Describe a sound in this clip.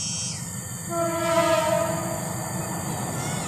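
A diesel locomotive sounds its horn in the distance.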